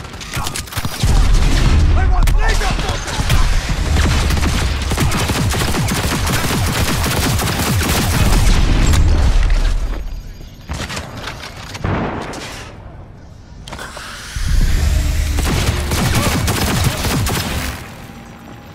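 Guns fire in rapid, loud bursts.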